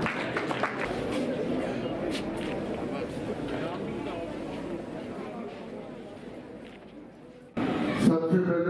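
A crowd of children chatters and murmurs outdoors.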